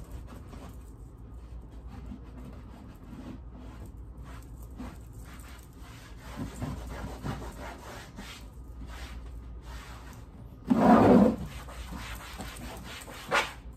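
A cloth rubs and scrubs against a plastic lid.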